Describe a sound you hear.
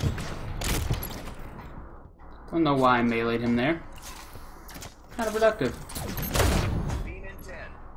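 Gunfire and blasts crack from a video game.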